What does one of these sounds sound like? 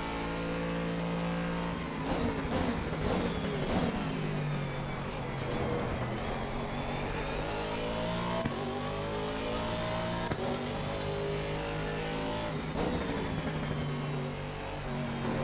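A racing car engine roars, rising and falling in pitch as the car brakes and accelerates through gear changes.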